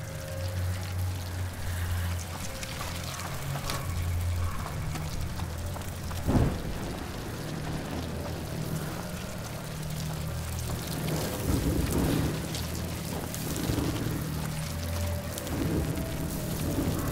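A torch fire crackles softly.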